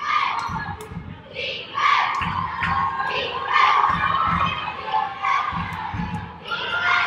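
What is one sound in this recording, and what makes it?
A basketball bounces on a hardwood floor in a large echoing hall.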